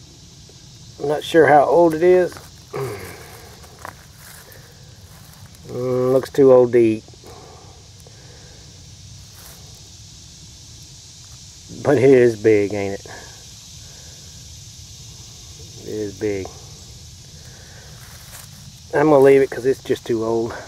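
Dry leaves rustle as a hand handles a mushroom.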